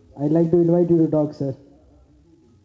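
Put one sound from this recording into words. A young man speaks into a microphone over loudspeakers.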